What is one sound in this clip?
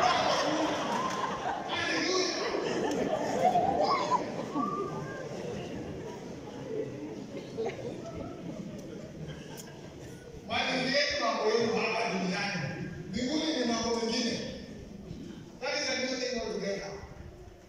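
A man speaks from the front of a large echoing hall through a loudspeaker.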